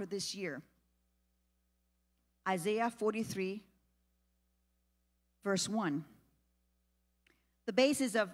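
A woman speaks calmly into a microphone, with pauses between phrases.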